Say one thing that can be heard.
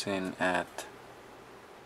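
A small metal part taps lightly on a scale.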